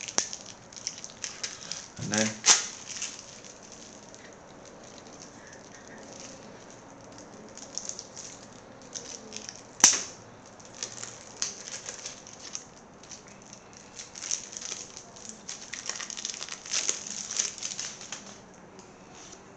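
Plastic wrapping crinkles and rustles up close.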